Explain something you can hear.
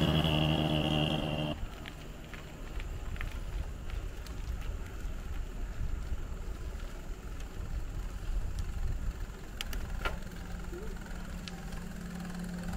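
Wind rumbles steadily across a moving bicycle.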